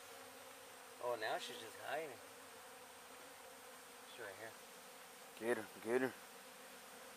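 A man speaks briefly nearby in short bursts.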